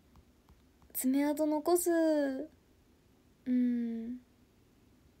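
A young woman speaks softly and close to a microphone.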